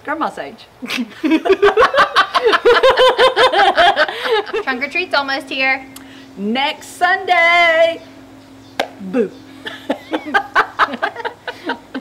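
Two women laugh loudly together.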